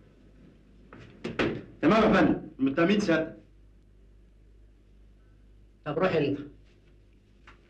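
A man speaks in a firm voice.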